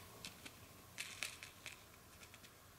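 A seed packet rustles in a hand.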